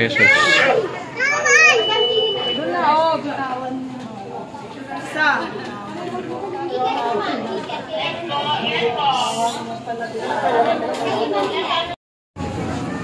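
A crowd of people chatter close by.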